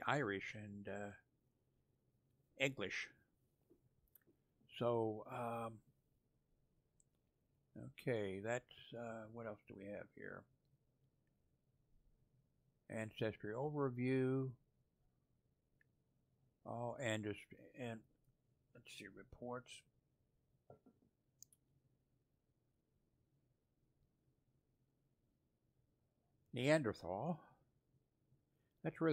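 An elderly man talks calmly into a close microphone, in short bursts with pauses.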